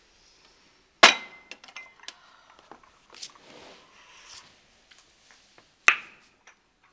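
A cup clinks on a saucer.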